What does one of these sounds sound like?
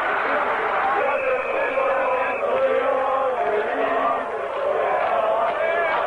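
Spectators nearby shout and cheer.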